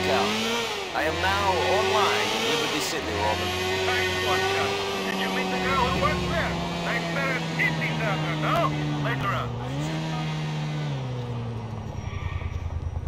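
A motorcycle engine roars and revs as it rides along.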